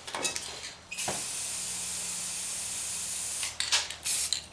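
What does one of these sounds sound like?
A spray can hisses steadily.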